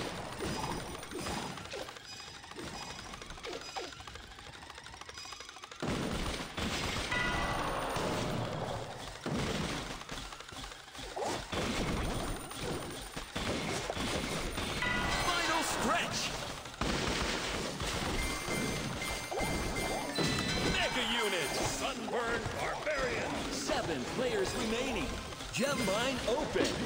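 Cartoon battle sound effects and music play from a mobile game.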